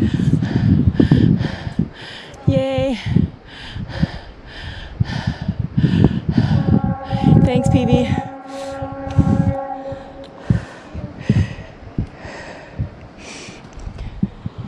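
Footsteps crunch steadily on stone steps outdoors.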